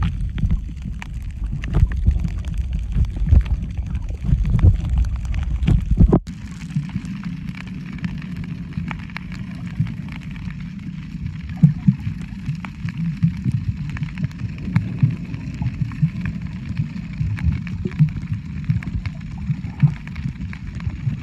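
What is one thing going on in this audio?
Water rushes and rumbles, heard muffled from underwater.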